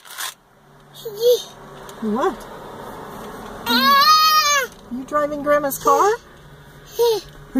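A toddler squeals and babbles happily.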